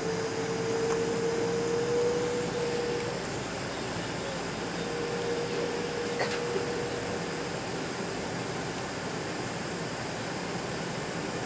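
Aircraft wheels rumble and thump over the runway.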